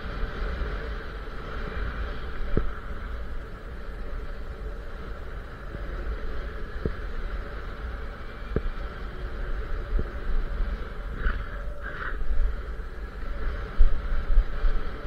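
Skis slide over snow.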